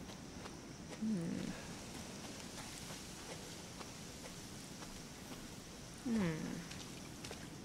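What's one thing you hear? A young woman murmurs briefly into a close microphone.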